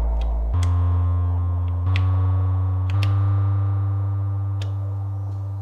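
Buttons click softly on a drum machine.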